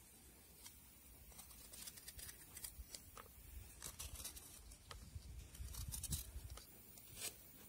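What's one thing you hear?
A knife scrapes and shaves a coconut shell.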